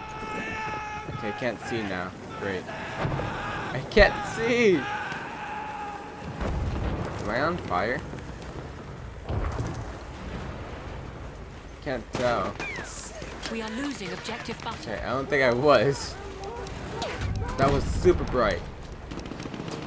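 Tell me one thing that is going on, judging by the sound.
Explosions boom and rumble close by.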